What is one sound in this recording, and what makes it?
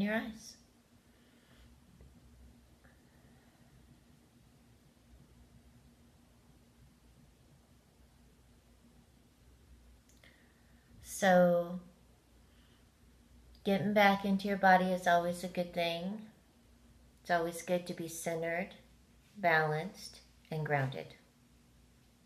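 A middle-aged woman speaks calmly close to the microphone, in short bursts with pauses.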